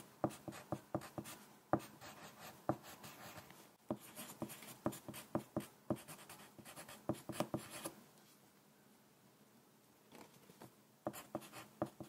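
A pencil scratches and taps on paper in quick strokes, close by.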